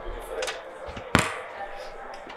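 A microphone knocks on a table.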